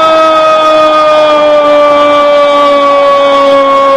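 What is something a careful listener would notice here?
A large stadium crowd cheers and roars.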